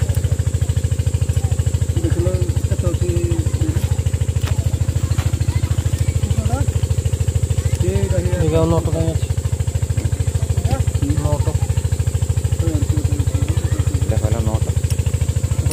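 A metal wrench clinks against metal.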